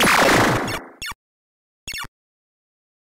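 Short electronic zaps from an arcade game blip a few times.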